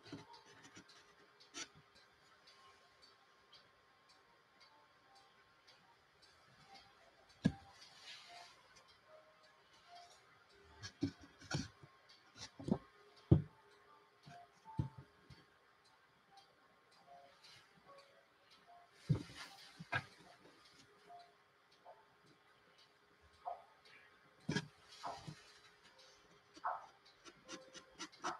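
A pencil scratches lightly on a board.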